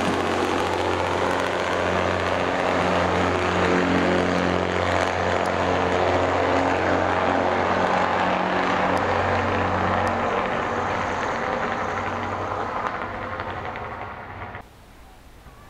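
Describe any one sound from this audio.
A diesel train engine drones loudly as the train pulls away and slowly fades.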